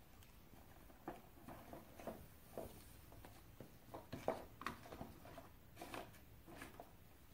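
Light cardboard taps and rustles as a small model is moved around on a table.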